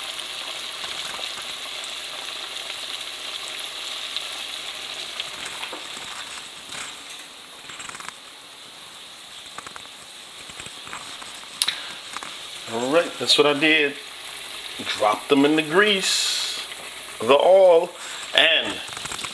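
Oil bubbles and sizzles steadily in a pot.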